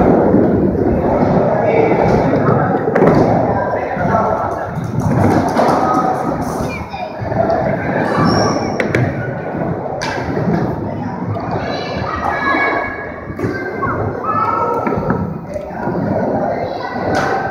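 Skateboard wheels roll and rumble on a wooden ramp.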